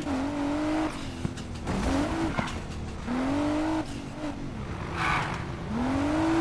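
A car engine revs up and down repeatedly as gears shift.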